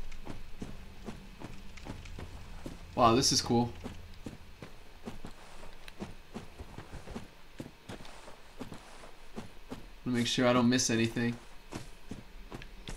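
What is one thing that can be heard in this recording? Footsteps tread steadily over rough ground.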